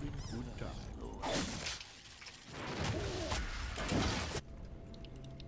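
Magic blasts whoosh and crackle in a fast fight.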